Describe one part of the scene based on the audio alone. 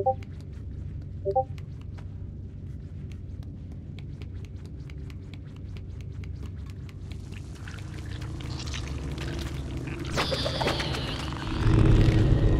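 Small footsteps patter quickly across a hard floor in a hollow, echoing room.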